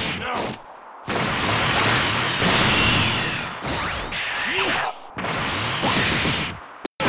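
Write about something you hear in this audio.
Energy blasts whoosh and explode.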